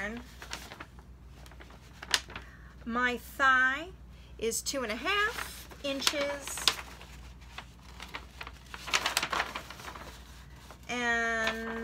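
Stiff paper rustles and crinkles as it is handled.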